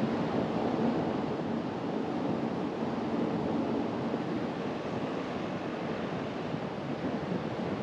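Tyres roll steadily over a rough road surface.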